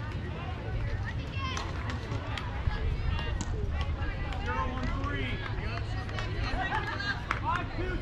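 Young girls shout and cheer across an open field.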